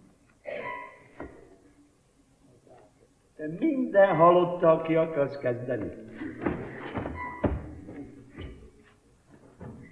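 A middle-aged man speaks with animation in a theatrical voice.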